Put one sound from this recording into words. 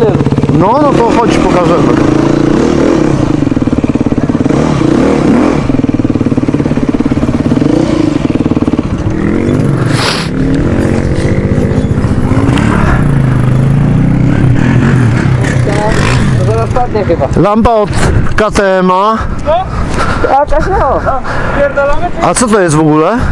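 A dirt bike engine revs up and down sharply.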